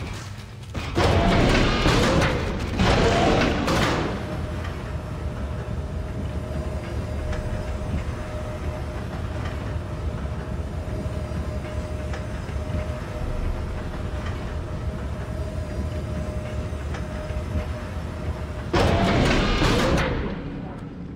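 Heavy lift machinery roars loudly as it starts and stops.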